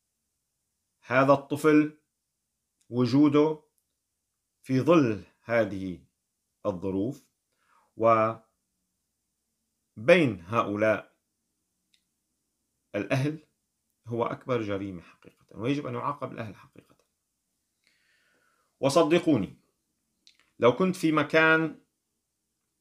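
A man speaks calmly and earnestly in short phrases, close to a microphone.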